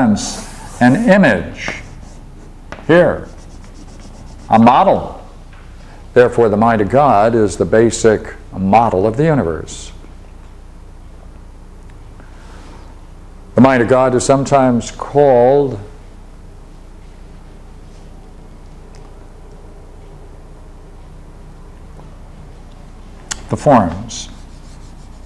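An elderly man speaks calmly, as if lecturing, with pauses.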